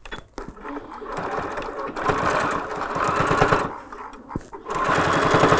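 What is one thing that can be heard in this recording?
A sewing machine runs, stitching rapidly.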